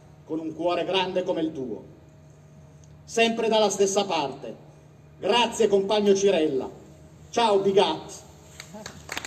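An elderly man speaks solemnly through a microphone outdoors, in short phrases.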